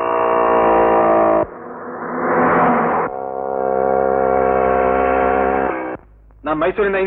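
A motorcycle engine roars along a road.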